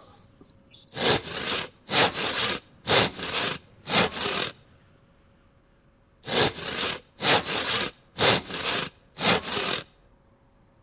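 A saw cuts through wood in steady, rasping strokes.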